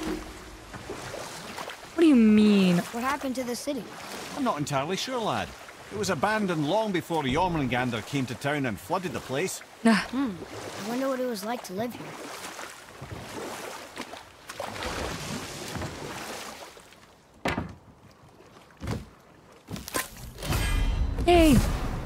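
Oars splash softly in water.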